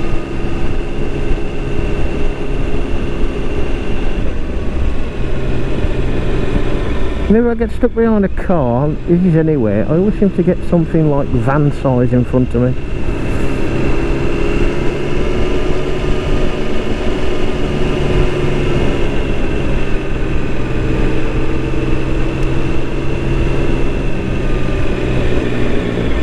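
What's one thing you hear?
Tyres roll over smooth asphalt.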